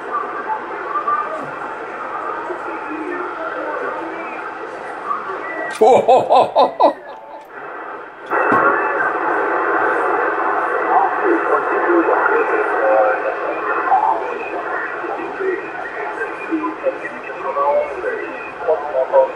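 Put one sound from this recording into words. A radio receiver hisses and crackles with static.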